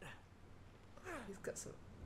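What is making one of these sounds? A young woman speaks briefly through a headset microphone.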